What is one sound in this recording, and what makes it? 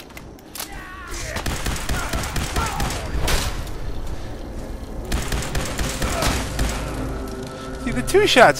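A laser rifle fires rapid crackling shots.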